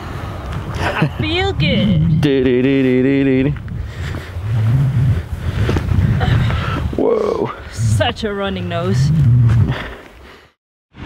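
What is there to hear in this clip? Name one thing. A young man talks with animation close by, outdoors.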